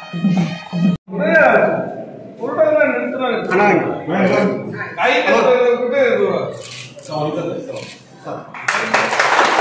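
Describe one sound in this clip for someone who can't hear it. Several men talk loudly close by in a crowd.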